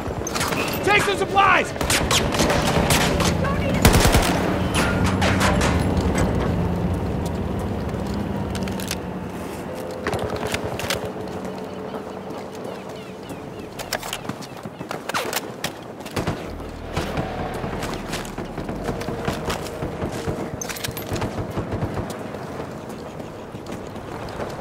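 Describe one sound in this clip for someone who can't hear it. Gunshots ring out in short bursts.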